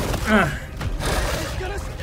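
A large creature roars and snarls.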